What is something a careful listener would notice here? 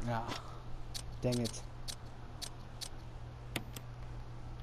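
Short electronic clicks sound as puzzle pieces snap into place.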